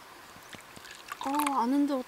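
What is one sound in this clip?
Liquid pours into a wooden cup.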